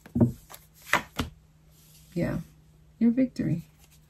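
Playing cards shuffle and slide together.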